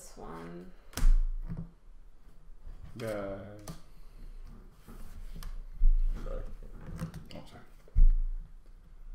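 Playing cards slap down on a table.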